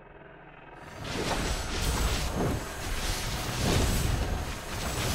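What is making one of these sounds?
Energy beams crackle and hum.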